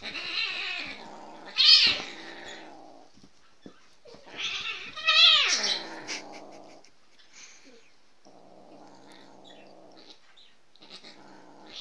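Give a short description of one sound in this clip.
A dog scuffles on a blanket.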